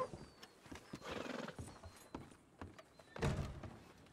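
Boots thud on wooden boards.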